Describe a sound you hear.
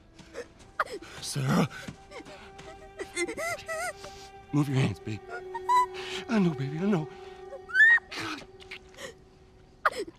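A man speaks in a distressed, pleading voice close by.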